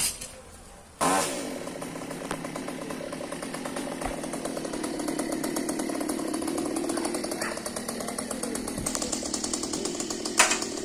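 A chainsaw engine runs with a steady rattling buzz.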